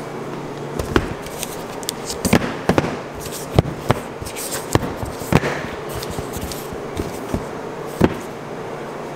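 Blocks of butter thud softly onto a metal counter.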